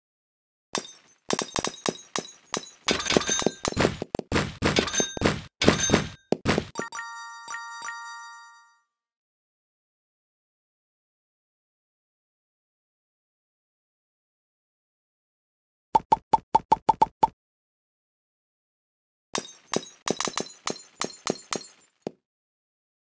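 Game blocks shatter with quick, bright cracking clicks.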